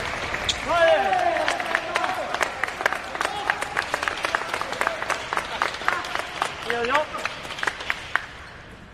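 Ping-pong balls click rapidly off paddles and a table in a large echoing hall.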